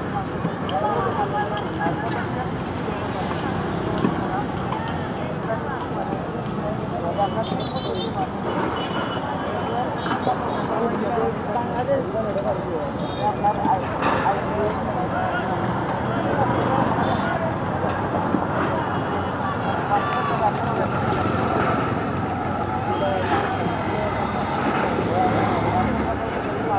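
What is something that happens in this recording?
Many men and women talk at once nearby, outdoors.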